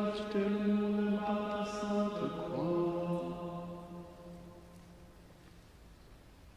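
Men chant together in a large echoing hall, the last note fading away.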